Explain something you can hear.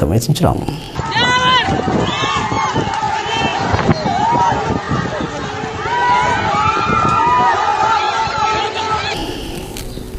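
A crowd shouts and whistles outdoors.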